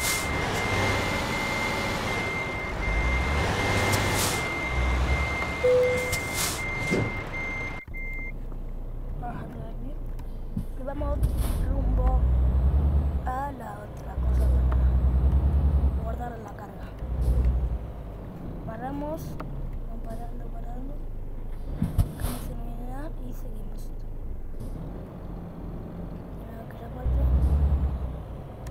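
A truck engine rumbles and revs as it drives.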